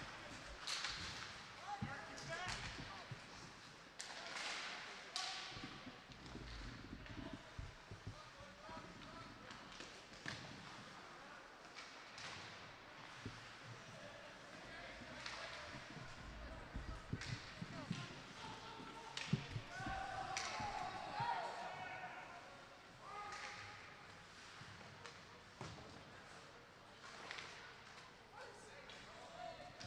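Skates scrape and carve across ice.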